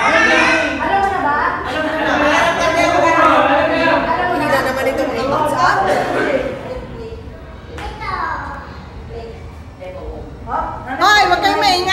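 A group of young men and women shout and cheer in an echoing room.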